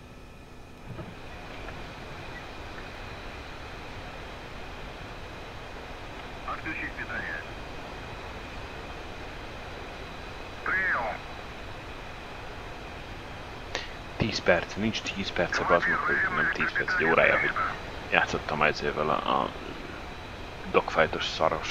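A jet engine whines steadily.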